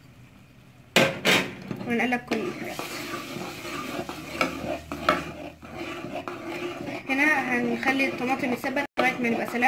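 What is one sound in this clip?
A metal spoon scrapes and clinks against a metal pot while stirring a thick sauce.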